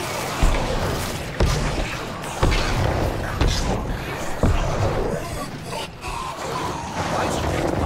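Weapons clash in combat.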